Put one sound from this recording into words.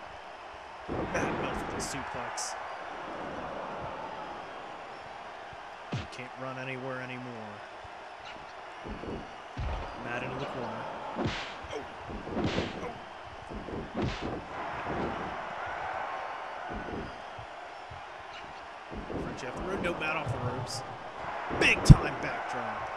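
Heavy thuds of bodies slamming onto a wrestling mat.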